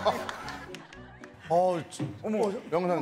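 A woman laughs close to a microphone.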